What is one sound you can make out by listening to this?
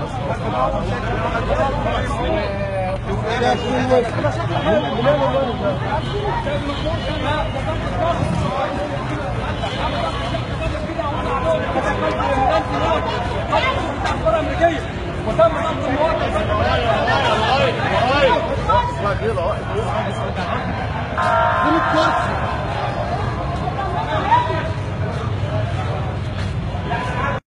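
A crowd of men shout and argue loudly outdoors.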